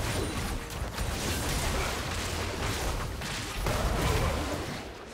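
Magic spells crackle and burst in a video game battle.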